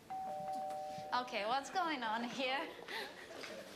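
A woman asks a question in surprise.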